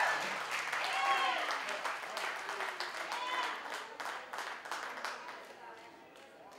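A rock band plays loudly in a large echoing hall.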